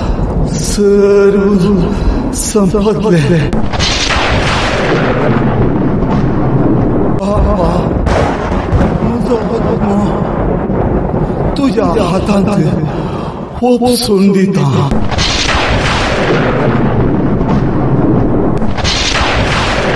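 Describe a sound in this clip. A man cries out in anguish with a loud, strained voice.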